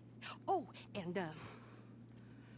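A woman shouts angrily close by.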